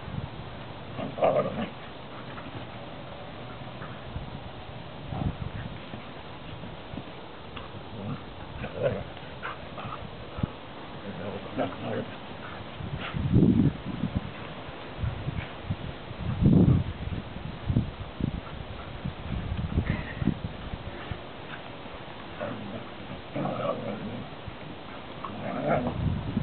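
Dogs growl and yip playfully while wrestling.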